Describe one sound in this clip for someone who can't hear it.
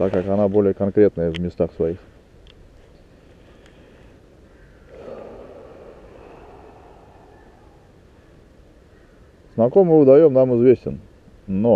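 A man talks close by, calmly.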